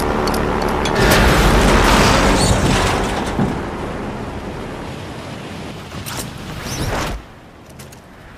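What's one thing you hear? Wind rushes loudly past during a fall, then suddenly stops.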